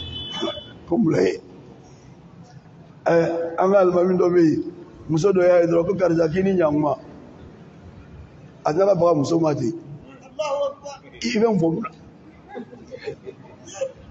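A man preaches through a microphone in bursts, with a strong, chanting voice and pauses in between.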